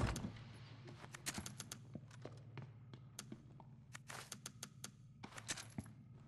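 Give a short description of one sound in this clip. Menu clicks tick quickly.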